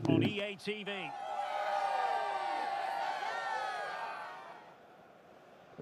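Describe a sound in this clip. A large crowd cheers and sings loudly.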